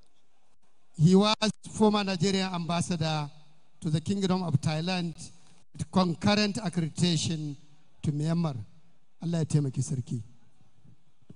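A man speaks through loudspeakers in a large echoing hall.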